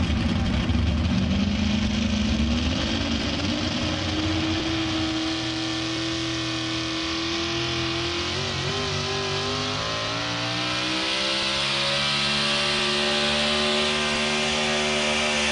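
A tractor engine drones steadily and rises in pitch.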